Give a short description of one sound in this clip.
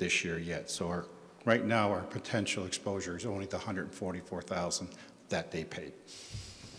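An elderly man speaks calmly into a microphone in a large echoing room.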